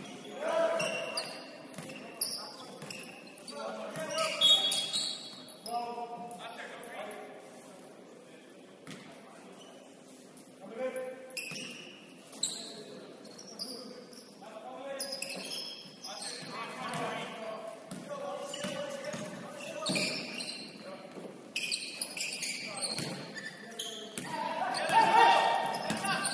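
Young players shout and call out to each other in a large echoing gym.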